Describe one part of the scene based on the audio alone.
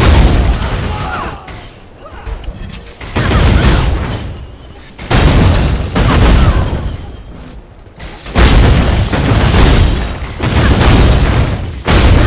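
Lightning spells crackle and zap.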